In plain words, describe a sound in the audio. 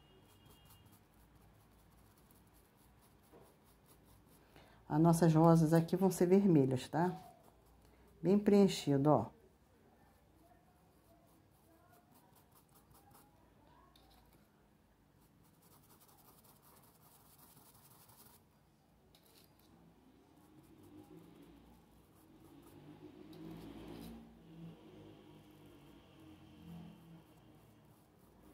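A paintbrush brushes softly on cloth.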